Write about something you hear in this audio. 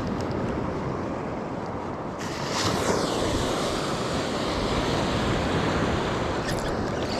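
Wind blows steadily past.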